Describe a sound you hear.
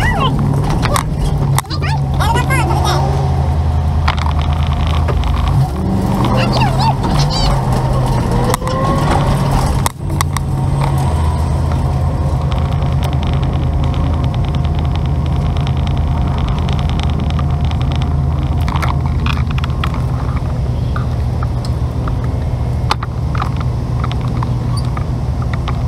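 A vehicle engine hums steadily close by.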